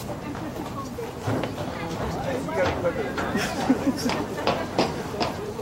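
Players call out faintly across an open field.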